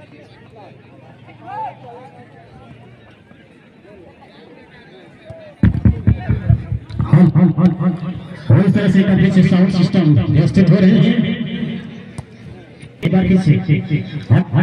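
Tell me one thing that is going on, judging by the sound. A crowd shouts and cheers from a distance outdoors.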